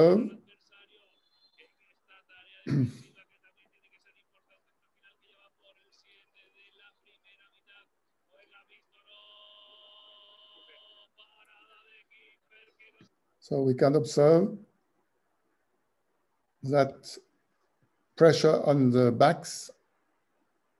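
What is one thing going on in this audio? A man speaks calmly in short bursts through a microphone on an online call.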